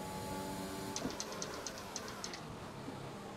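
Gearshifts click quickly in a row.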